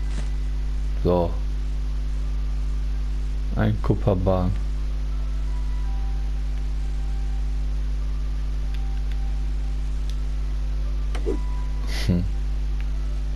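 A short bright chime rings as an item is picked up.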